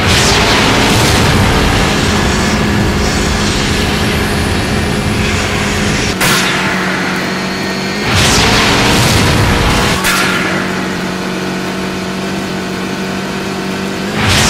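Tyres crunch and hiss over a gravel track.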